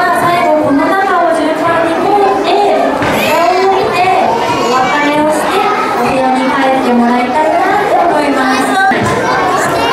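A young woman speaks cheerfully through a microphone in a large room.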